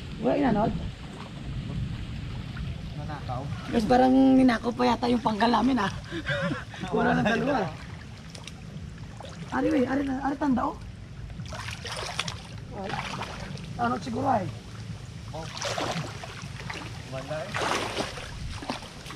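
Water splashes and swirls as people wade.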